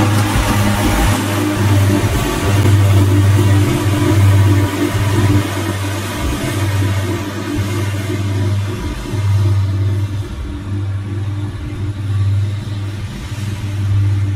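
Mower blades slash through tall grass.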